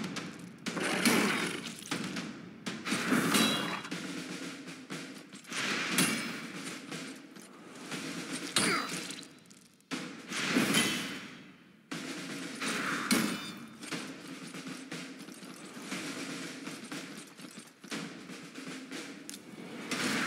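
Fantasy battle sound effects clash and whoosh as figures attack.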